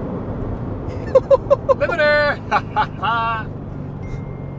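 A young man laughs loudly and excitedly close by.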